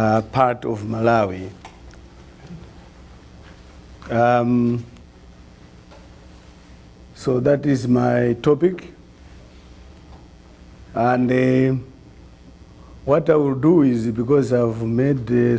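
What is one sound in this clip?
A man speaks calmly through a microphone, with long pauses.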